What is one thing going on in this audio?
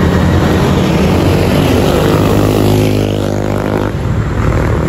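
A motorbike engine drones as it passes close by.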